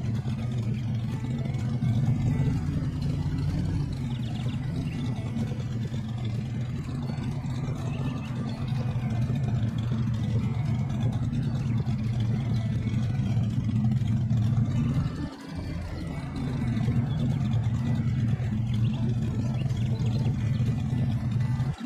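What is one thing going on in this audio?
A large engine rumbles steadily at low revs.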